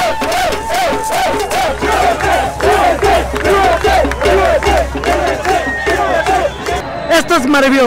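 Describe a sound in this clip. A crowd chants loudly in rhythm outdoors.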